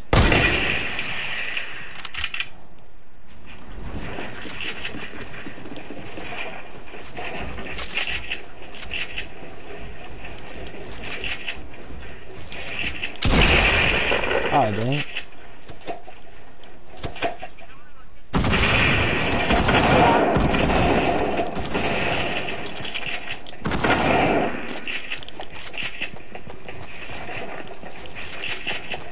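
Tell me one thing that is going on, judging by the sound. Wooden building pieces clatter and thud into place in quick bursts.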